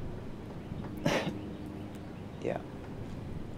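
A second young man speaks softly.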